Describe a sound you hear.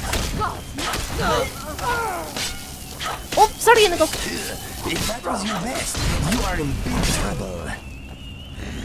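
Magic fire crackles and bursts in short blasts.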